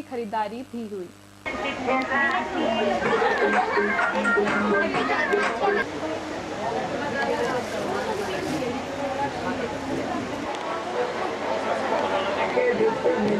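A crowd of shoppers chatters in the background.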